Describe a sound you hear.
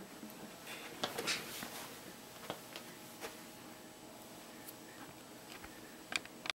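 A shirt rustles and brushes close against the microphone.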